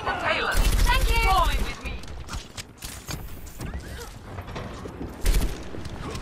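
A gun fires in quick, loud bursts.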